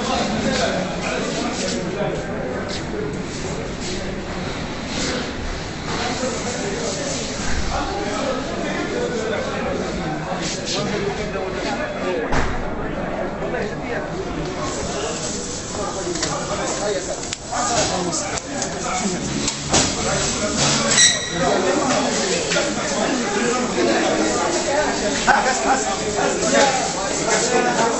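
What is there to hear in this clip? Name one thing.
A crowd of men talk and call out at once in an echoing corridor.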